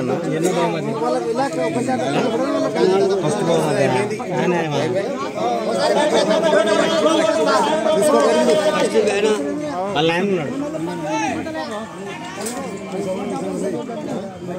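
Several men talk over one another outdoors.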